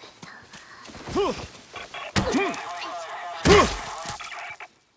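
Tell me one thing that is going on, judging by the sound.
Heavy blows thud as a creature is struck down.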